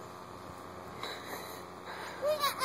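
A young child calls out in high, excited bursts.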